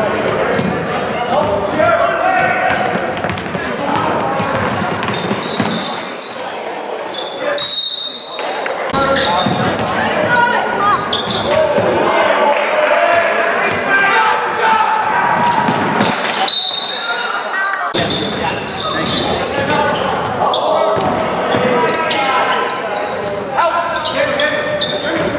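Spectators cheer and call out in a large echoing gym.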